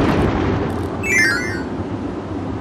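A quick chiming jingle twinkles.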